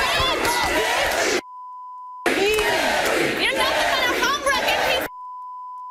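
A young woman shouts angrily.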